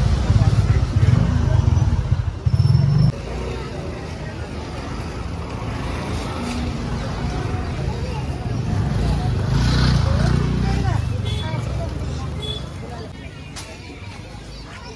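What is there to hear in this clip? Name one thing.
A crowd murmurs and chatters in a busy street market.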